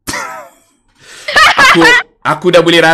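A young woman laughs loudly over an online call.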